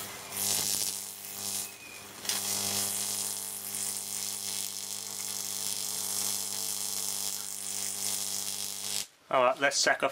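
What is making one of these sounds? An electric arc buzzes and crackles with a steady hum.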